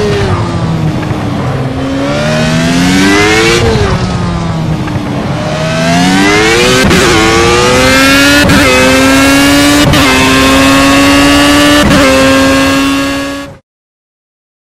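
A racing car engine revs high, rising and falling in pitch as it shifts gears.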